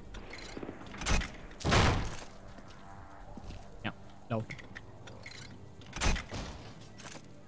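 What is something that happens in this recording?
Bolt cutters snap through a metal chain with a loud clank.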